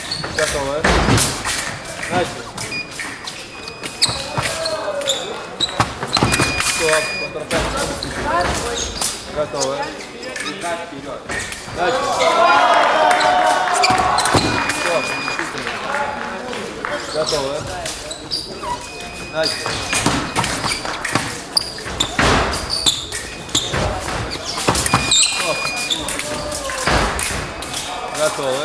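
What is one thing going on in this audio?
Sport shoes squeak and stamp on the floor.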